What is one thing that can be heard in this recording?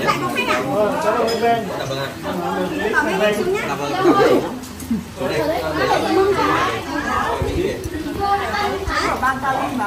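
An older man talks close by.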